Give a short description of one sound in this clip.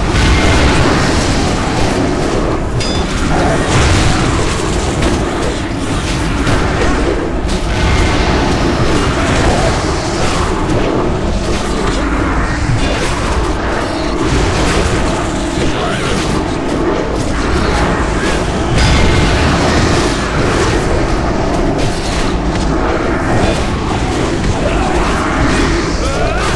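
Weapons clash and spells crackle in a loud, busy battle.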